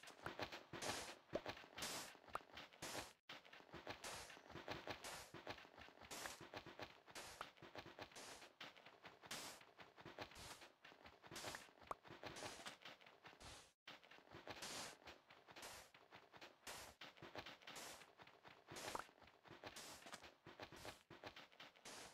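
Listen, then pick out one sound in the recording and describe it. Blocks of sand break apart with soft pops.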